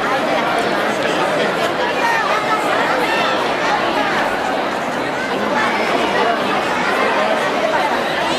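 A crowd of girls and women chatter outdoors in a busy street.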